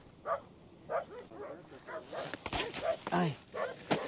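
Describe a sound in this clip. A man sets a heavy coil of hose down on sand with a soft thud.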